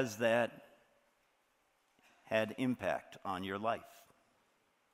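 A middle-aged man speaks with emphasis through a microphone in a large hall.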